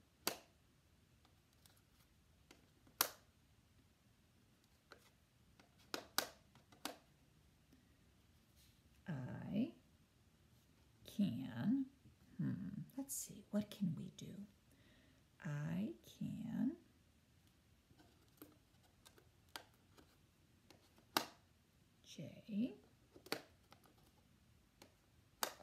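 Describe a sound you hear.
Letter tiles click against a metal tray.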